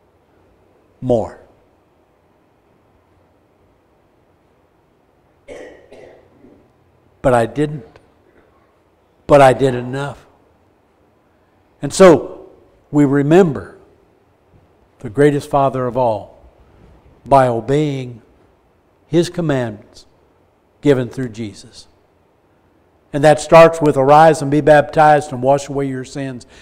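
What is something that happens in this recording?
An elderly man speaks with animation in short phrases, with pauses.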